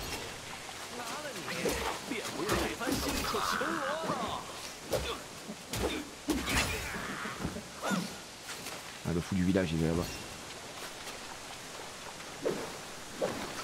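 Blades clash and strike in quick, sharp blows.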